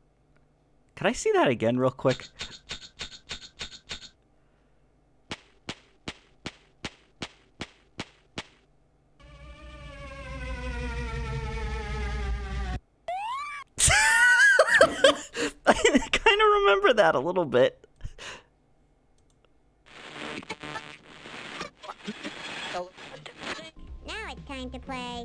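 Playful cartoon sound effects chime, jingle and warble.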